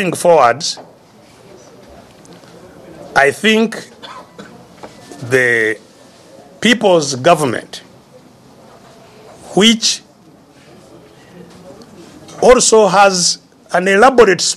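An elderly man speaks with animation, in bursts with pauses, close to a microphone.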